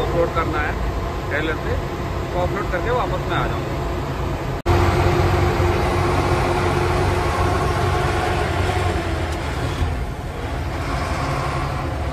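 A vehicle's engine rumbles steadily from close by.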